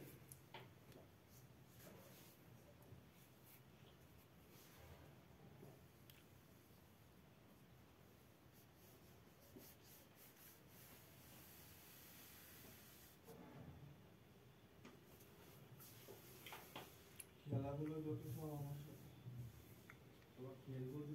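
A brush softly strokes across paper.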